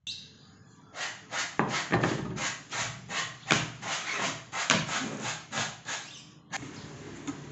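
Wooden rings knock and clatter against a wooden board.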